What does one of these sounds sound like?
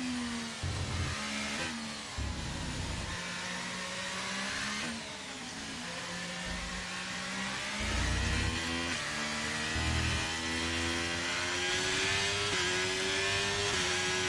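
A racing car engine whines loudly, its pitch rising and falling with gear changes.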